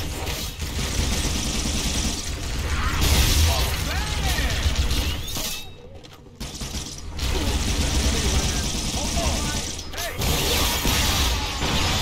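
Shards explode with sharp crackling blasts.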